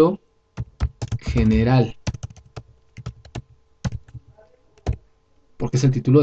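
Computer keys click as someone types.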